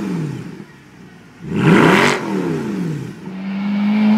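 A car engine revs sharply through its exhaust.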